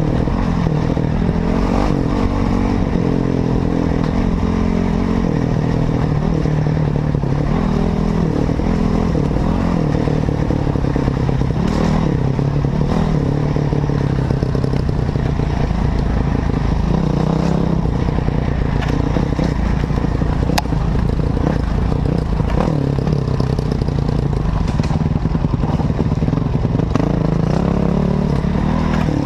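A motorcycle engine roars and revs up and down close by.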